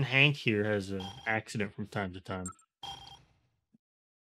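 A short electronic menu chime beeps.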